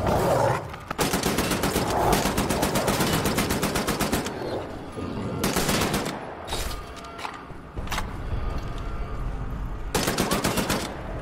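A rifle fires rapid bursts of loud shots.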